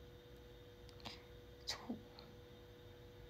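A young woman makes kissing sounds with her lips.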